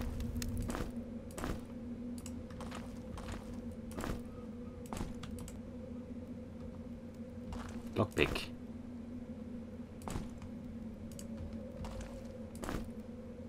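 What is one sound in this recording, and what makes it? Footsteps thud on a stone floor at a steady pace.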